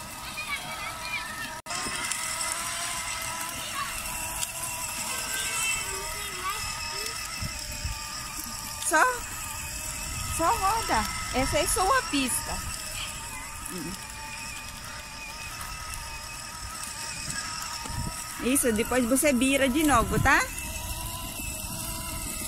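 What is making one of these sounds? Small plastic wheels rumble over paving stones.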